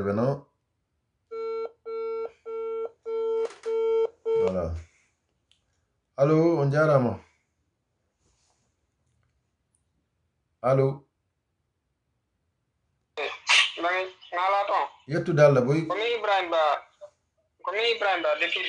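A man speaks calmly and close to the microphone, with pauses.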